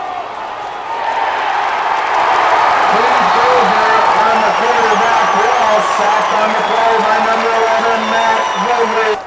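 A large crowd cheers and shouts loudly.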